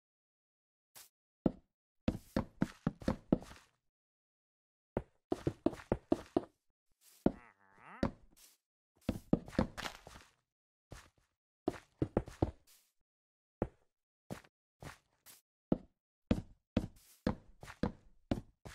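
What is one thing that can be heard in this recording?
Wooden blocks break apart with quick, crackling knocks.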